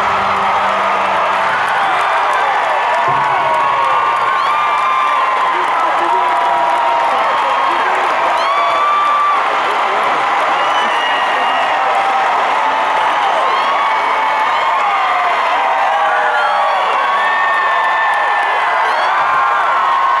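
A large crowd cheers and screams loudly close by.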